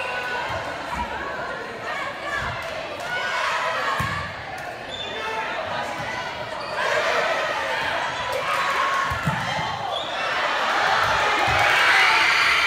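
A volleyball thumps off players' arms.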